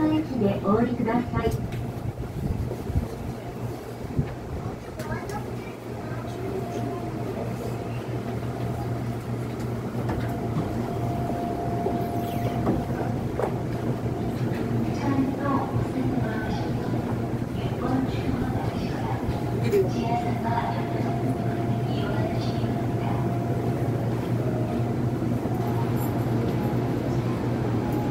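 A subway train rumbles and hums steadily as it rolls along the track.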